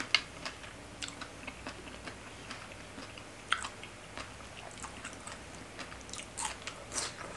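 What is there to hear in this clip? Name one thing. A young woman chews food wetly and crunchily close to a microphone.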